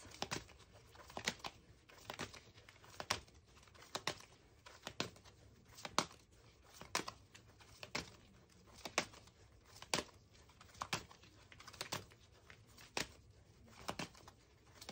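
Playing cards riffle and snap as they are shuffled by hand.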